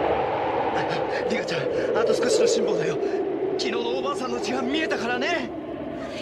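A young man speaks in a strained voice over the wind.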